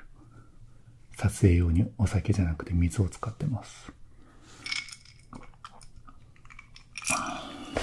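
A young man gulps a drink.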